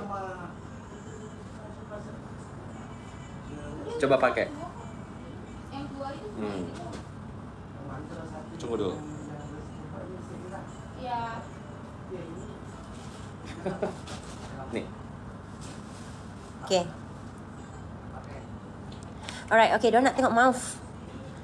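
Fabric rustles as a scarf is handled.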